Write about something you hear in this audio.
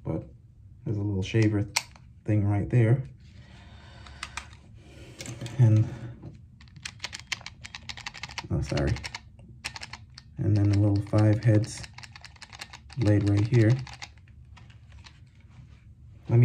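Plastic parts click and tap as they are handled.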